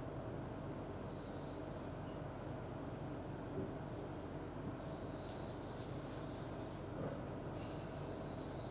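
A pen scrapes across a board in short strokes.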